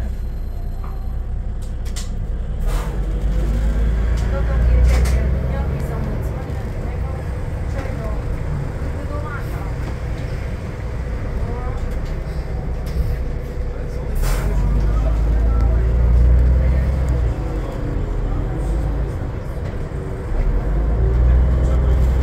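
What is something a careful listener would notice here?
A bus rattles and creaks as it moves.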